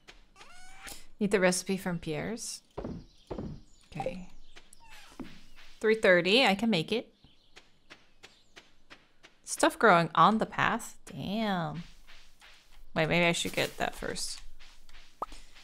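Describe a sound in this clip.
A young woman speaks casually and close into a microphone.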